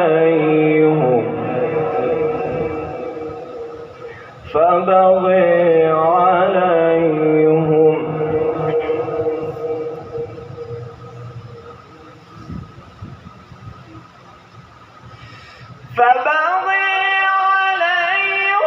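A young man chants in long, drawn-out melodic phrases through a loudspeaker, with an echo trailing after each phrase.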